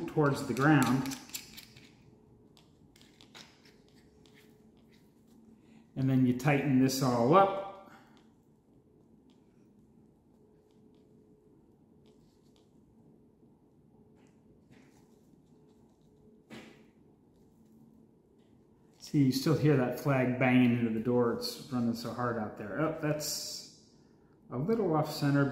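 Backpack straps and buckles rustle and click.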